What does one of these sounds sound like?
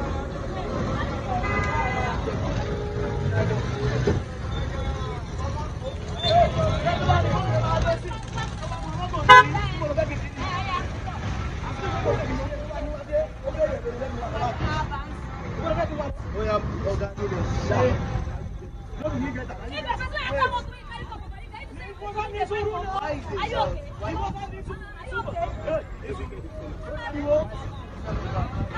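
A woman argues loudly and with animation close by.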